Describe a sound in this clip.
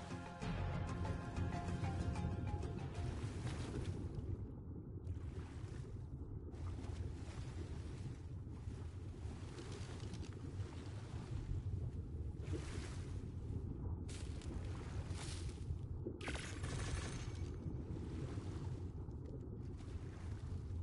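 Water rumbles and swirls in a low, muffled underwater wash.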